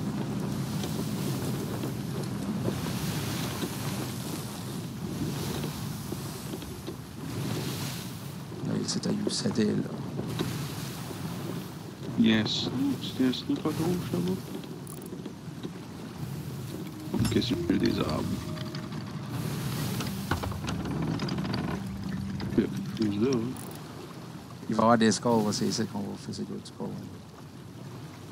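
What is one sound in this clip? Waves roll and splash against a wooden ship at sea.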